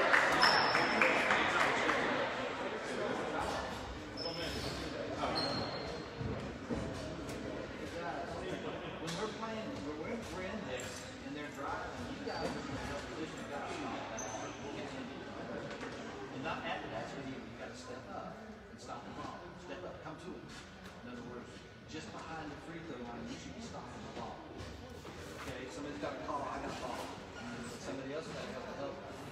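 Young men talk among themselves in a huddle nearby.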